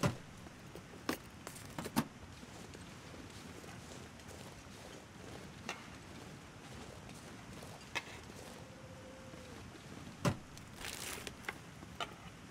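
A metal box rattles and clanks as it is rummaged through.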